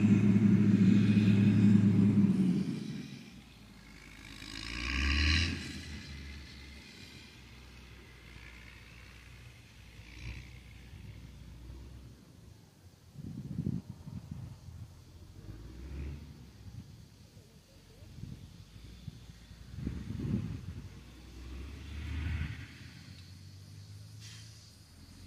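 A heavy diesel engine rumbles at a distance, louder at first.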